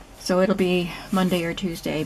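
Hands rub softly over a book cover.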